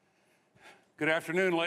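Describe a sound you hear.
A man speaks loudly through a loudspeaker.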